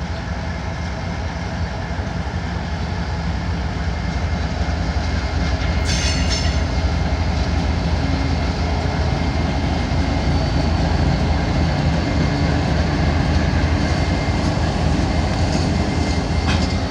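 Diesel locomotive engines rumble loudly as a freight train passes close by.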